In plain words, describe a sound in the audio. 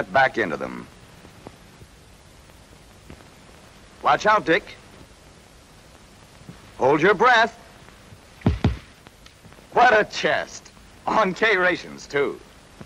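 A man speaks in a lively way, heard through an old, thin-sounding recording.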